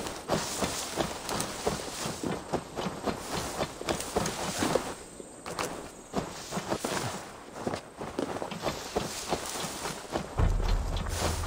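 Footsteps patter quickly through rustling plants.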